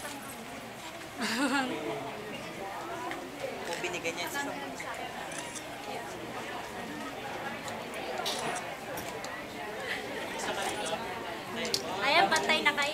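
A crowd of young women chatter and call out nearby.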